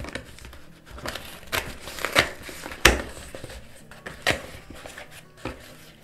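Cardboard flaps rustle and thump as a box is opened.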